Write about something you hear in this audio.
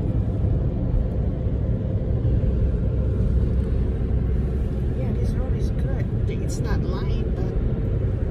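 Tyres roll on the road with a low rumble.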